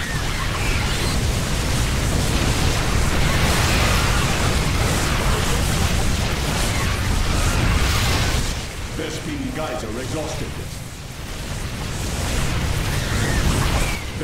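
Laser weapons zap rapidly in a battle.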